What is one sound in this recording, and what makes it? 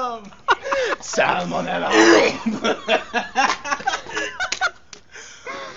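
A young man laughs loudly nearby.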